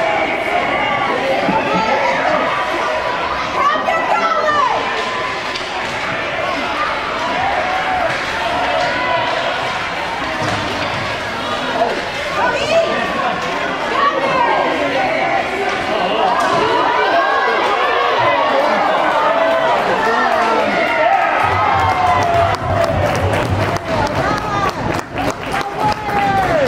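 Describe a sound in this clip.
A crowd of children and adults chatters and cheers in a large echoing rink.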